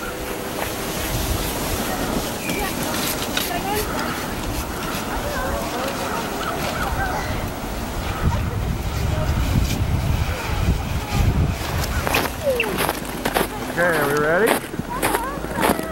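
A sled scrapes and hisses over snow.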